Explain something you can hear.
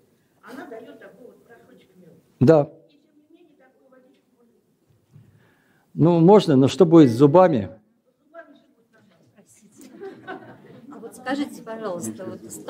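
An elderly man speaks calmly and with expression, close by.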